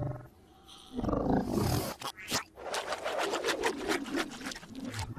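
A small cartoon creature squeals excitedly.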